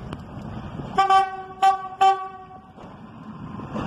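A train horn sounds three short blasts.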